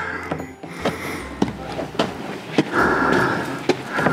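An elderly man breathes heavily up close.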